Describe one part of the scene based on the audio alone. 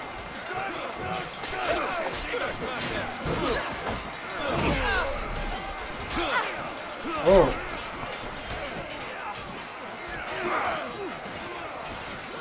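Swords clash against shields in a battle.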